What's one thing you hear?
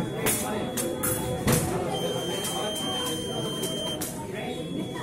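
Footsteps thud and shuffle on a metal fencing strip.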